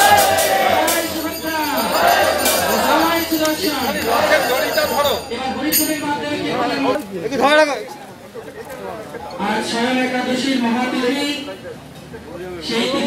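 A crowd of men and women chant and call out together outdoors.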